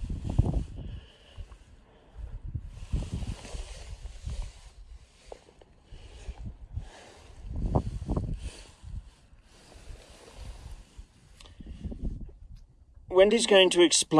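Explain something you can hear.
Wind rumbles across an open mountainside.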